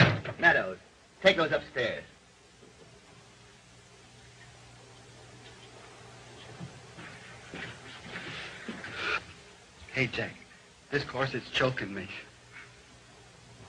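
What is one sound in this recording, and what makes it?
A man speaks briskly.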